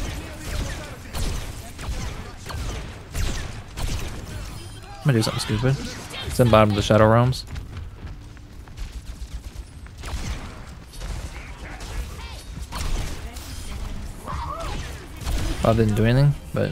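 A weapon fires in rapid bursts.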